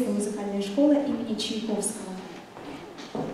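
A young woman announces through a microphone in a hall.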